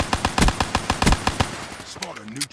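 A rapid-fire gun shoots in loud bursts.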